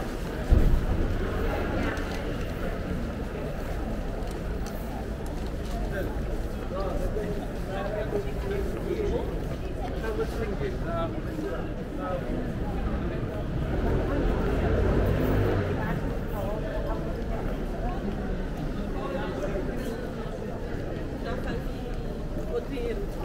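Men and women chat in the distance along a street.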